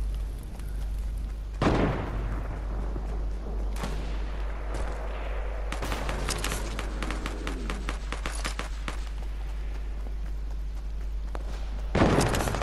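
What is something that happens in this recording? Quick footsteps patter on hard ground.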